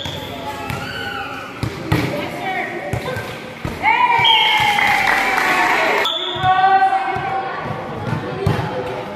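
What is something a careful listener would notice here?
Young women shout and cheer loudly nearby.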